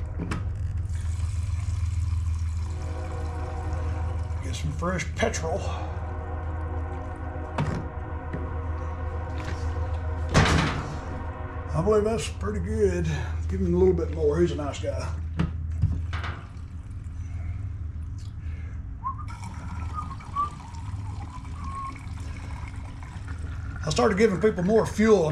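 Fuel glugs and splashes as it is poured from a can into a small engine's tank.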